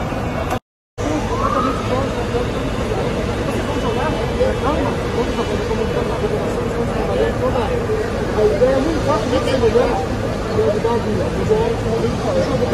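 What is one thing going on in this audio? A crowd of people talks and murmurs close by.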